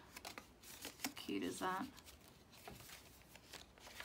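A page of thick paper turns.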